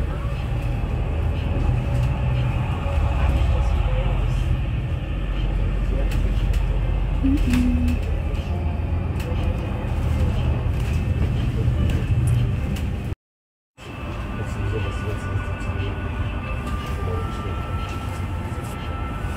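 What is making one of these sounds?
A vehicle engine rumbles steadily from inside a moving vehicle.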